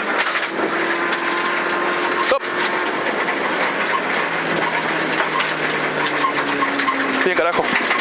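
Tyres crunch and rattle over a gravel track.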